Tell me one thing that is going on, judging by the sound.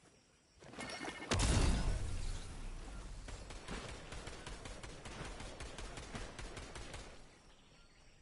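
Footsteps splash quickly through shallow water.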